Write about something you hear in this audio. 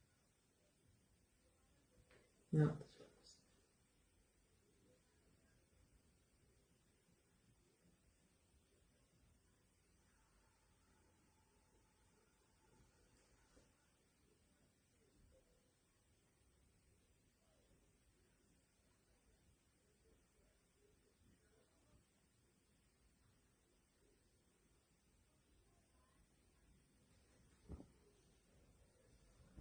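A paintbrush dabs and strokes softly on canvas.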